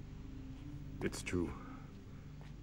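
An older man speaks briefly and calmly.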